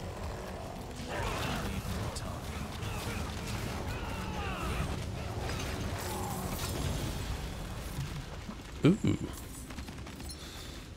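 Fiery spells blast and crackle during a fight.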